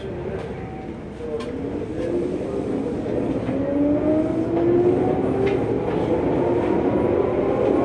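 A train pulls out of a station, its motor whining higher as it speeds up.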